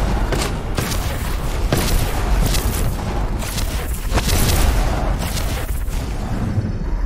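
Electricity crackles and booms loudly.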